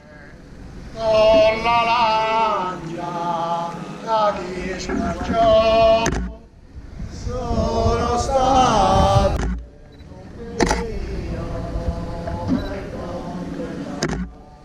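A group of men sing a slow chant outdoors.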